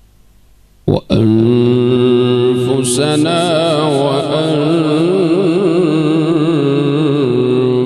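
A man chants loudly and melodiously into a microphone, heard through loudspeakers in a large echoing space.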